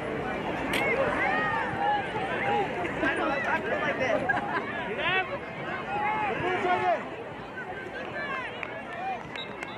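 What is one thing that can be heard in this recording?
Young players and spectators shout and call out across an open field outdoors.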